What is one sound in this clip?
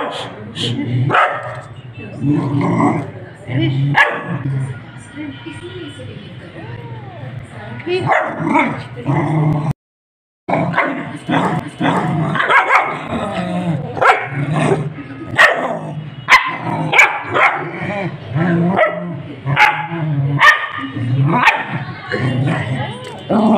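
A small dog howls close by.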